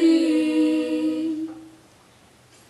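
Young girls sing together in harmony through microphones in a large echoing hall.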